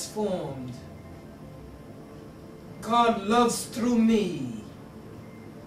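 A man preaches with animation in short, drawn-out phrases.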